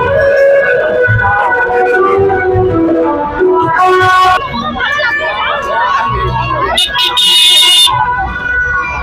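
Car horns honk in a traffic jam.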